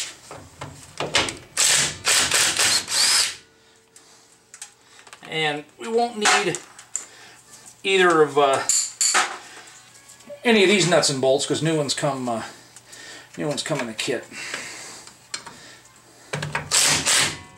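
A cordless impact wrench hammers in short bursts.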